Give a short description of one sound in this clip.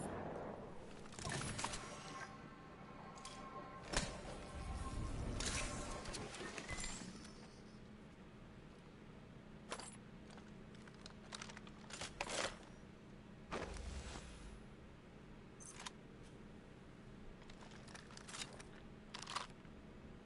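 Short game sound effects click and clatter now and then.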